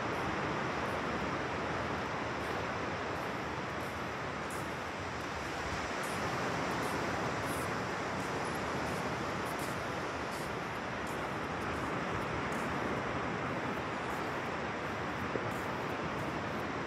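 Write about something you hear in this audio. Ocean surf breaks and washes in the distance.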